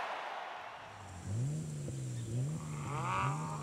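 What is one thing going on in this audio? A car engine idles and revs up close.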